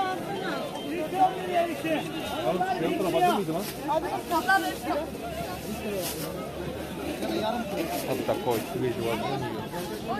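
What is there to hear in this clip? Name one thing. Several men and women chatter nearby.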